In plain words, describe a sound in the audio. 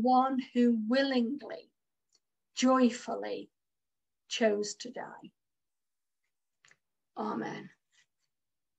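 An older woman speaks calmly in short phrases through an online call, with pauses between them.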